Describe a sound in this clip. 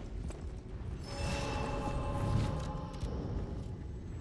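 A shimmering magical chime rings out and fades.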